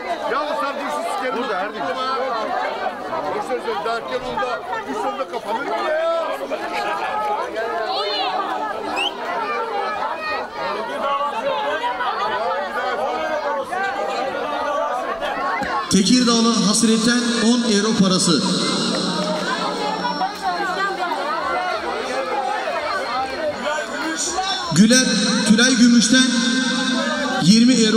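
A crowd of women and girls chatter loudly outdoors.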